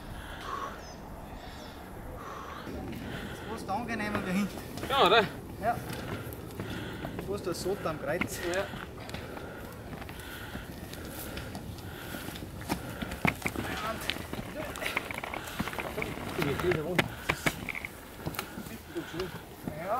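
Footsteps scuff and crunch on a steep forest path.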